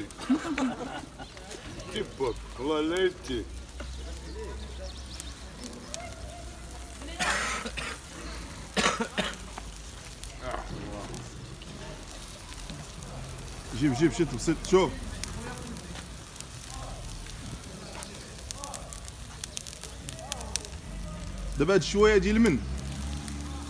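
A middle-aged man speaks loudly nearby.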